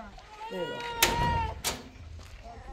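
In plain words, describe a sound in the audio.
A metal door rattles and clanks as it is pushed open.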